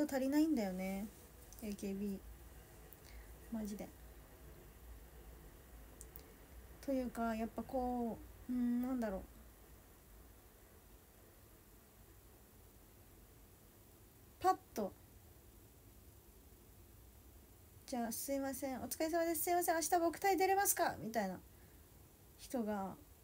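A young woman speaks calmly and close to a microphone, in short bursts with pauses.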